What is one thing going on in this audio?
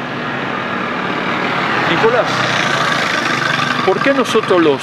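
A motor scooter drives past.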